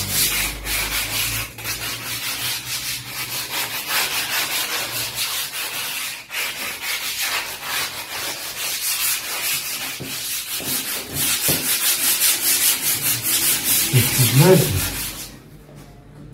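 A cloth scrubs and rubs briskly over hard surfaces.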